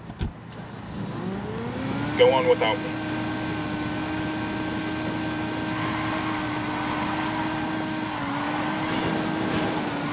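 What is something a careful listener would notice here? A sports car engine revs up and hums steadily.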